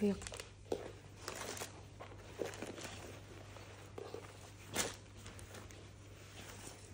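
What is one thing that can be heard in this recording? Fabric rustles as hands handle and fold cloth.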